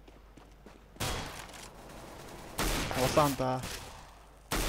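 Gunshots crack sharply nearby.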